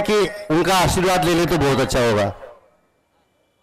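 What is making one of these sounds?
An elderly man speaks loudly and with animation into a microphone over loudspeakers.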